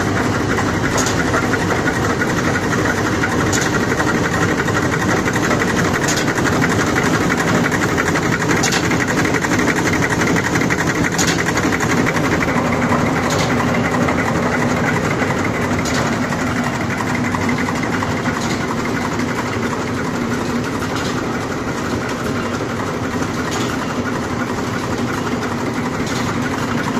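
A machine part clicks at a regular beat.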